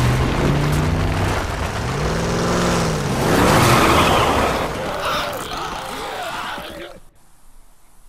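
A truck engine rumbles as the truck drives.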